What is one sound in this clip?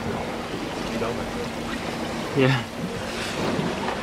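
Water rushes and splashes past a moving boat's hull.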